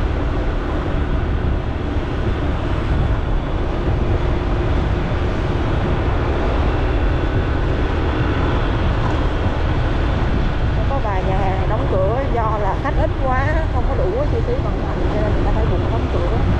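Wind rumbles loudly against the microphone.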